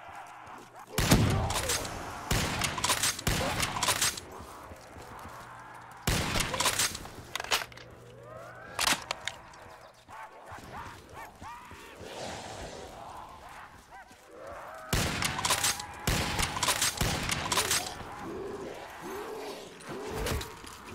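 Rifle shots fire loudly, one after another.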